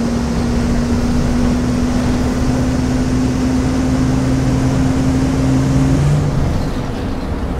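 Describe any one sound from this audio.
A bus engine whines higher, then winds down and slows.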